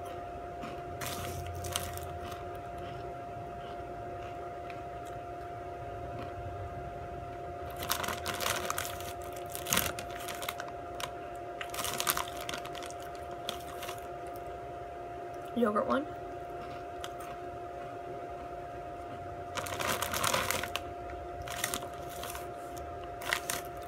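A chip bag crinkles and rustles close by.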